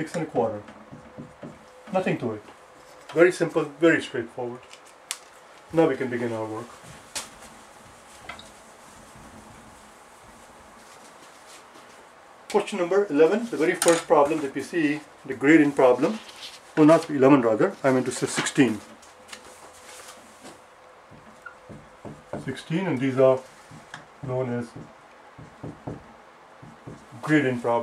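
An elderly man talks calmly close by.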